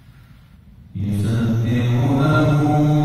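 A man begins chanting in a sustained, melodic voice through a microphone in an echoing room.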